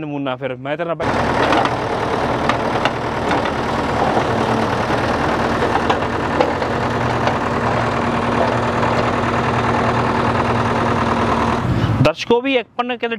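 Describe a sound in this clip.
A backhoe engine rumbles and roars steadily.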